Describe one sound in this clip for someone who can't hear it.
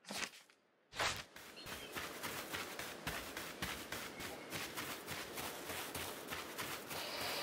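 Quick footsteps run over grass.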